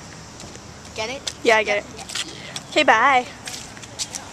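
A young girl laughs loudly up close.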